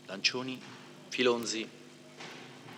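A woman speaks a few words in an echoing hall.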